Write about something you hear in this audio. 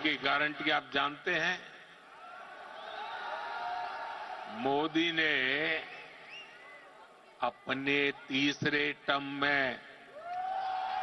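An elderly man speaks forcefully into a microphone in a large echoing hall.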